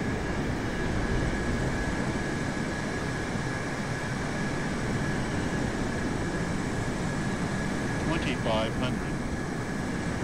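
Jet engines roar steadily as an airliner flies past.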